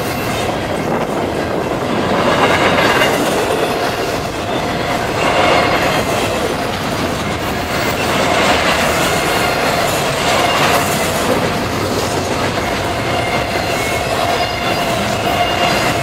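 A freight train rumbles past close by, its wheels clacking rhythmically over the rails.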